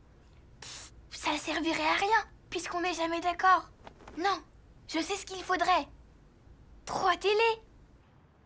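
A girl talks softly and close by.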